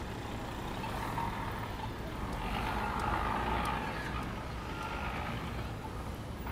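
A car engine hums as it passes close by.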